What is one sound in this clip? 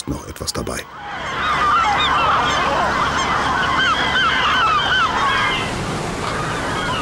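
A large flock of seagulls cries over the sea.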